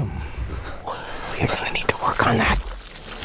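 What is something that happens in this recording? A man speaks in a deep, growling voice.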